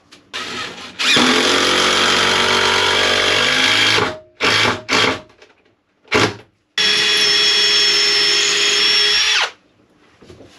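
A power drill whirs loudly in short bursts.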